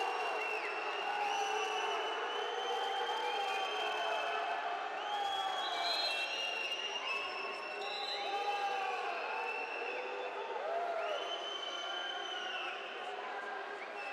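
A large crowd whistles and cheers in an echoing indoor arena.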